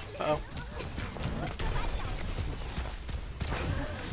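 Gunshots fire in quick bursts from a game.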